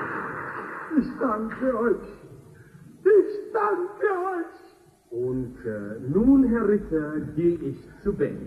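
A man sings with feeling in a large, echoing hall.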